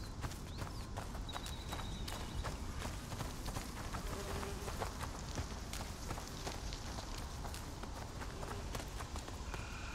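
Footsteps crunch quickly over stones and dry leaves.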